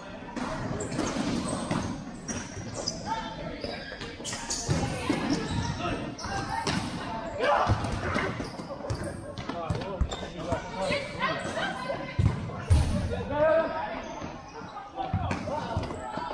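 Players' shoes squeak and patter on a hard court in a large echoing hall.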